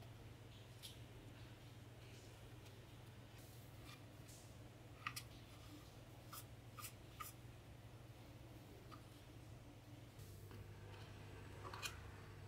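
A metal tool scrapes and taps on a metal cover.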